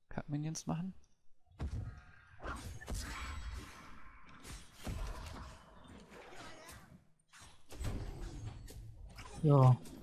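Weapons clash and slash in a fight.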